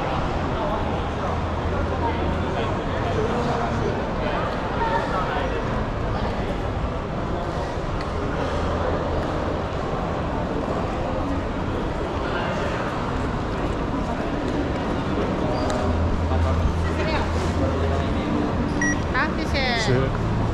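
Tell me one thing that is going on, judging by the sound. A crowd murmurs in a large, echoing hall.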